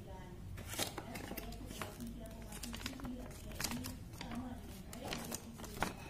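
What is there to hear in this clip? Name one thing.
A paper sheet rustles as it is unfolded.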